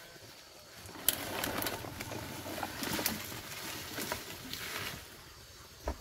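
Bamboo poles drag and clatter over dry leaves and sticks.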